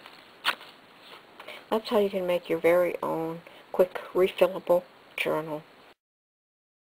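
Hands rustle and tap a cloth-covered book.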